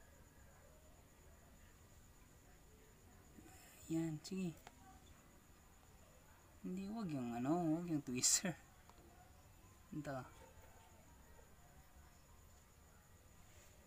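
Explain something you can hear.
A scorpion's legs rustle faintly over dry bedding.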